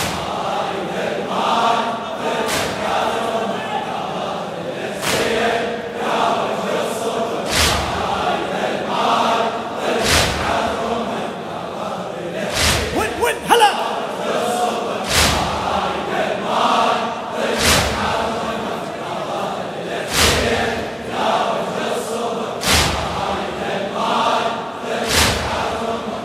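A large crowd of men beats their chests in a steady rhythm.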